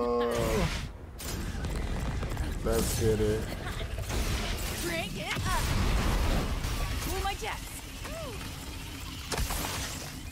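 Gunfire and explosions boom and crackle in a video game.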